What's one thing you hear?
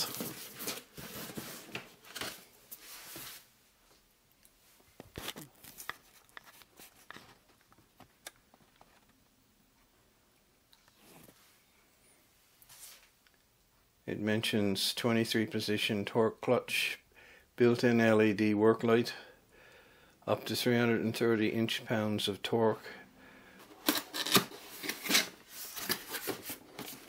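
Hands handle a cardboard box, which scrapes and rustles close by.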